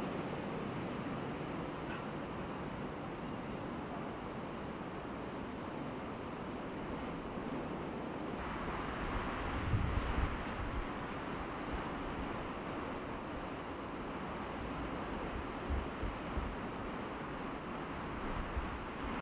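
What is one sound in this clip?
Wind gusts outdoors over rippling water.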